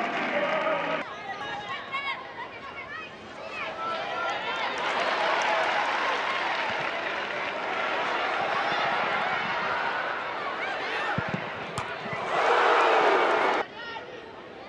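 A stadium crowd cheers and murmurs in the open air.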